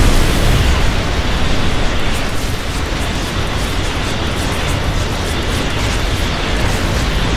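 Explosions and blasts of battle rumble loudly and continuously.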